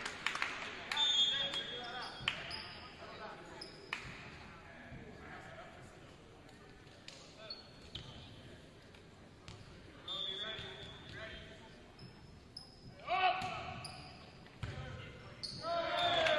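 Young men shout and call out in an echoing hall.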